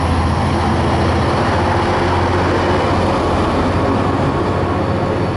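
Passenger carriage wheels rumble and clatter on the rails.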